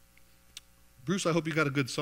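A man begins speaking loudly and with energy into a microphone.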